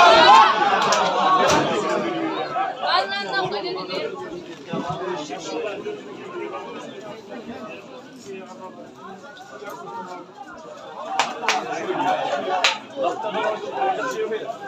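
Men shout and call to each other across an open outdoor pitch.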